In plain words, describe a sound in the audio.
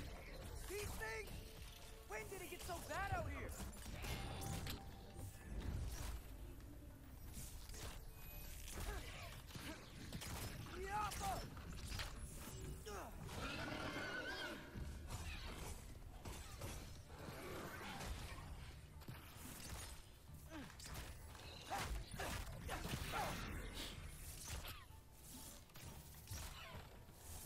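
A bowstring twangs as arrows are loosed in quick succession.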